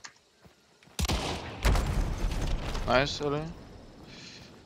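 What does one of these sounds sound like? A gun fires loudly nearby.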